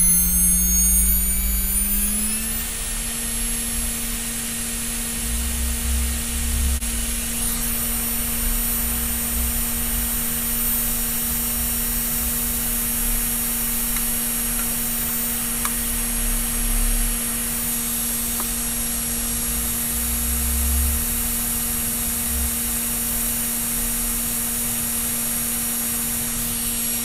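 An electric motor hums steadily, rising in pitch at first and then holding level.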